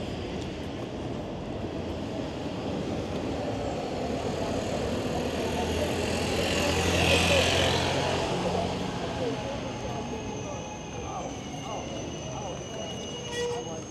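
Tyres of an electric bike roll over a gritty street.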